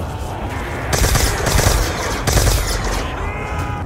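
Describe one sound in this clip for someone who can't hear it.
A heavy energy gun fires loud zapping blasts.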